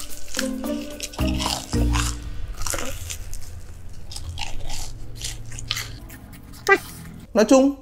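A young man crunches and chews crispy food close to a microphone.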